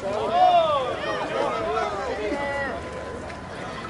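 Men call out to each other across an open field outdoors.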